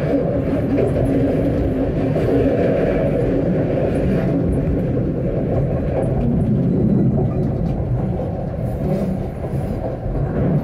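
A tram rumbles steadily along the rails.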